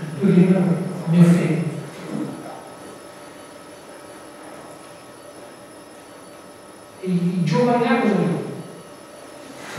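A young man speaks to an audience in a large echoing hall.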